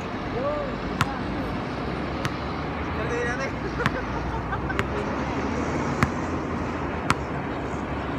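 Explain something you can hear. A basketball bounces sharply on a hard outdoor court.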